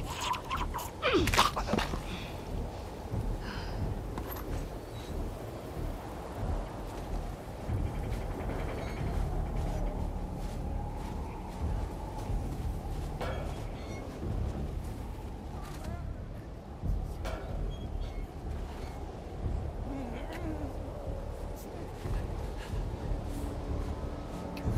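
Boots crunch through deep snow.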